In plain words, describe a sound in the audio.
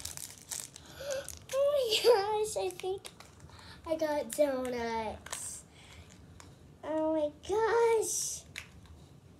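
A young girl talks and exclaims excitedly close by.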